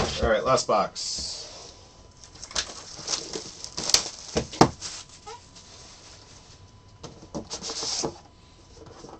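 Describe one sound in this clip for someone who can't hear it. Plastic wrap crinkles as hands tear it.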